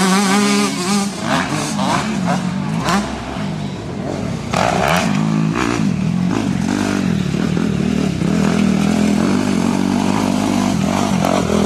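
A motorcycle engine revs loudly, rising and falling in pitch.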